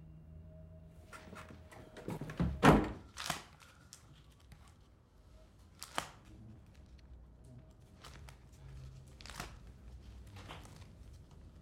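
Pages of an album rustle as they are turned.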